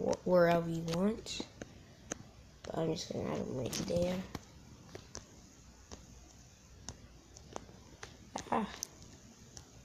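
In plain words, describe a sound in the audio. Glass blocks are placed with soft, short clicks.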